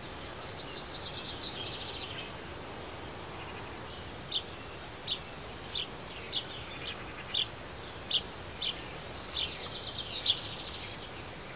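A small bird twitters in quick trills.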